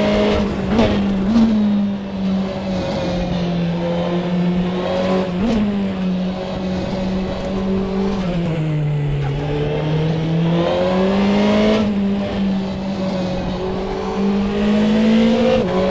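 A racing car engine roars steadily, its pitch rising and falling as it shifts gears.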